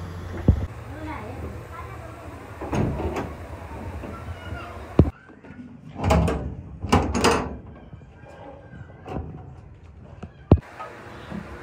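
Heavy metal cabinet doors swing and clang shut.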